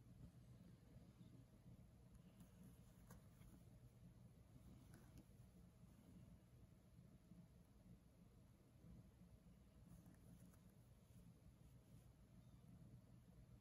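Fabric crinkles and rustles softly under fingers.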